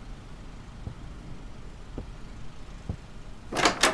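Slow footsteps thud.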